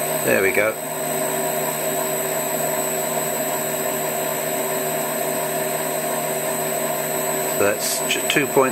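A small lathe motor hums steadily with a high whine.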